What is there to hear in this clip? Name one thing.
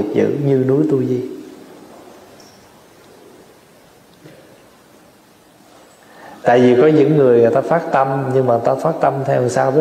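A young man speaks calmly into a microphone, with pauses.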